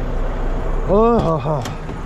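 A truck door latch clicks open.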